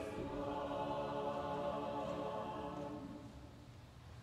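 A choir sings a held closing chord that fades away in a large echoing hall.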